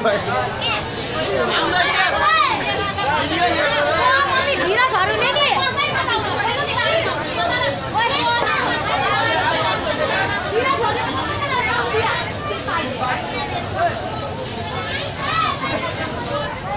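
A crowd of men and women talks and shouts all around, close by, outdoors.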